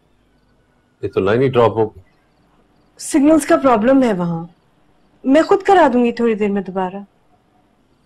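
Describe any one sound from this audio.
A woman speaks in a distressed, tearful voice close by.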